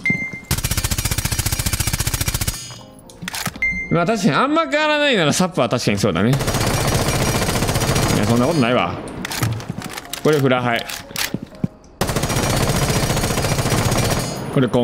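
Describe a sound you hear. A gun fires rapid automatic bursts.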